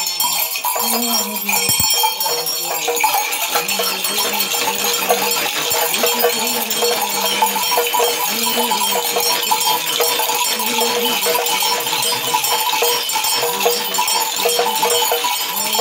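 Metal bells jingle on a shaken staff.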